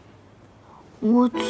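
A young woman exclaims briefly close by.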